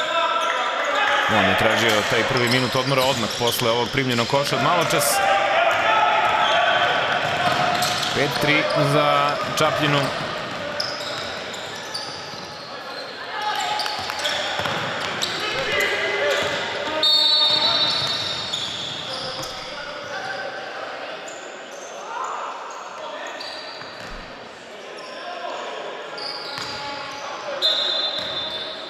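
Children shout and call out to each other during a game.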